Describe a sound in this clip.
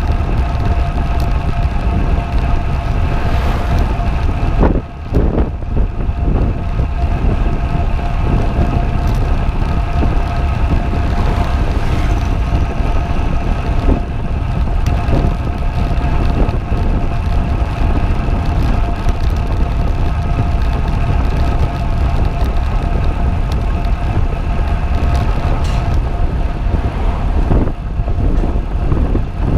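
Wind buffets loudly and steadily, outdoors.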